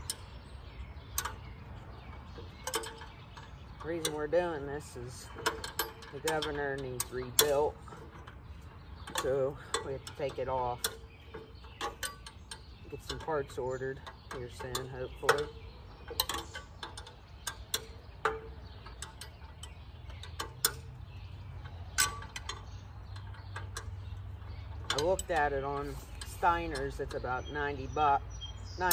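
Metal parts clink and tap as an engine is worked on.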